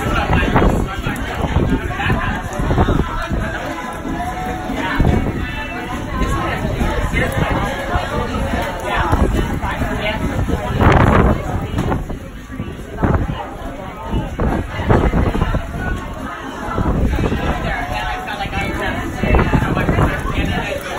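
Rain falls outside, heard through a window.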